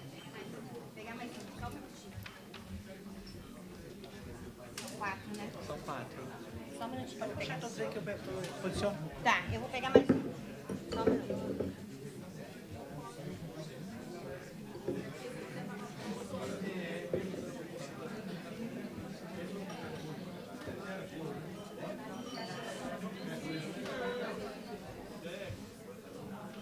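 Many people chatter at once in a room that echoes a little.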